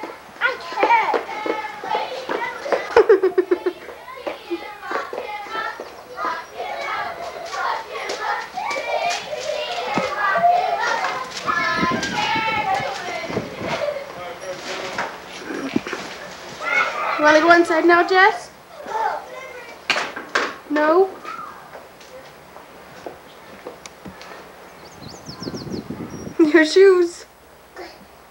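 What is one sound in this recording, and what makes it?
A toddler babbles and chatters close by.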